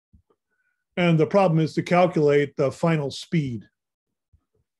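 A man speaks calmly over an online call.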